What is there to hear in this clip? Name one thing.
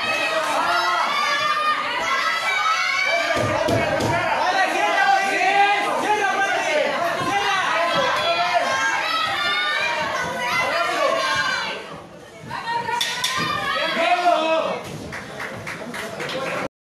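Men and women shout and cheer loudly nearby.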